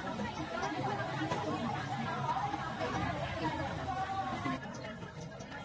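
Women chat with one another nearby.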